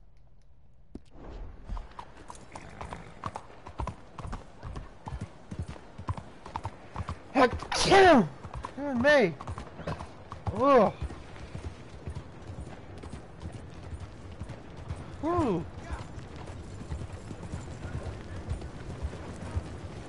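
A horse's hooves clop steadily on a hard road.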